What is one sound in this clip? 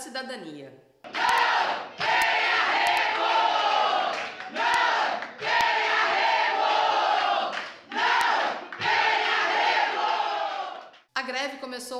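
A large crowd of women and men chants loudly together in bursts.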